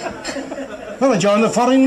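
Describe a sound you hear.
A man sings loudly.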